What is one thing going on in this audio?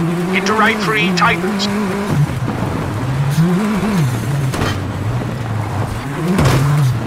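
Gravel crunches and sprays under the tyres.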